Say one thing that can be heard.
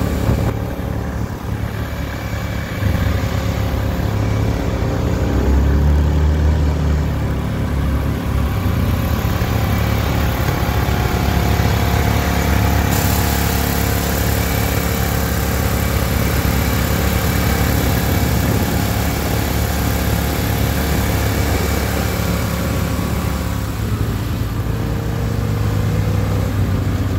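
Small engines of riding vehicles rumble and chug steadily nearby.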